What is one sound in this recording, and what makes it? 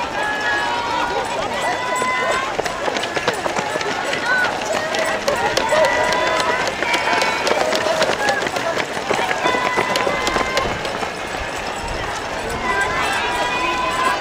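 Many runners' footsteps patter on the road.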